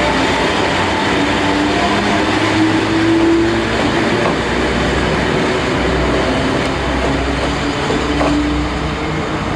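An electric locomotive motor whines as the locomotive moves.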